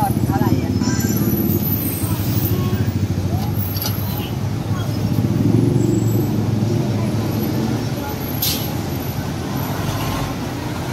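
City traffic rumbles steadily in the distance.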